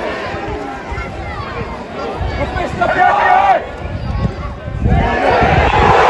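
Men on the touchline shout excitedly close by.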